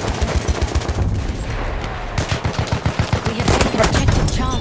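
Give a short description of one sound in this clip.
A machine gun fires rapid bursts up close.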